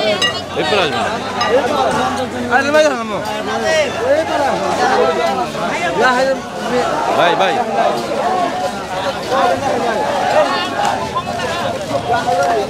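A crowd of men shout and talk excitedly outdoors.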